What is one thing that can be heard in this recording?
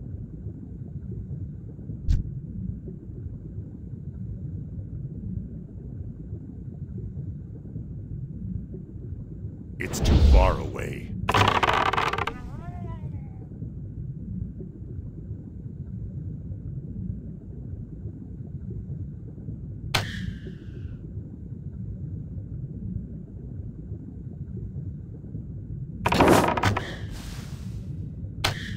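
A low, muffled underwater rumble goes on steadily.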